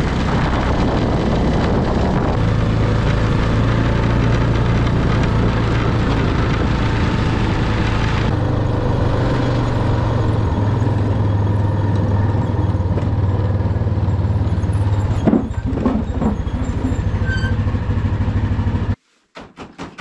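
A quad bike engine runs loudly and steadily close by.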